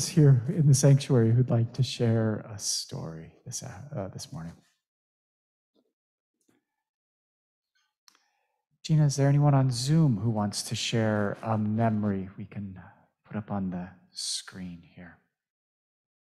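A man speaks calmly into a microphone in a large echoing room.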